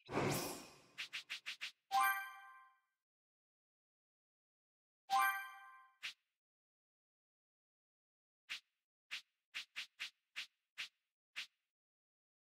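Short menu clicks tick as selections move.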